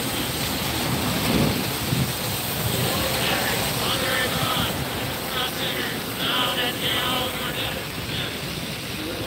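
Cars hiss past on a wet road.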